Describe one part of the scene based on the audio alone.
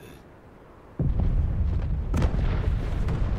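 An explosion rumbles deeply.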